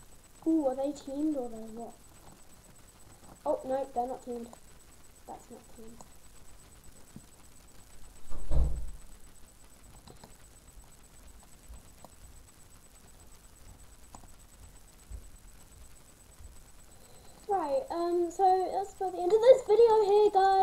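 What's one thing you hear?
A young girl talks with animation close to a microphone, in short bursts.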